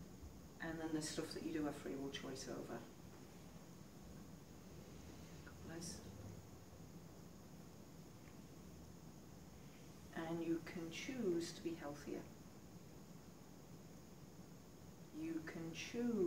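A young woman speaks calmly and softly nearby.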